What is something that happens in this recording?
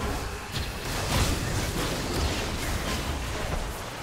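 Magic spells blast and crackle in a fight.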